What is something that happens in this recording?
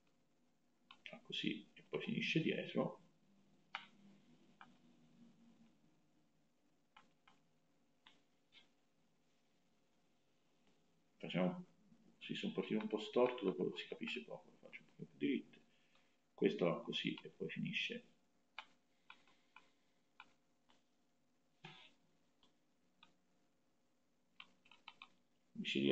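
A young man speaks calmly through a microphone, as if on an online call, in short bursts.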